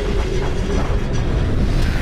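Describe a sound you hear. Steam hisses out in a rushing burst.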